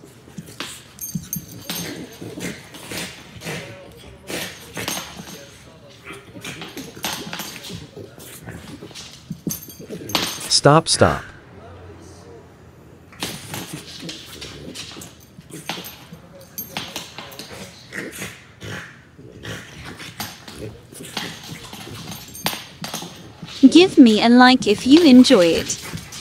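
Two dogs snort and grunt as they play-fight.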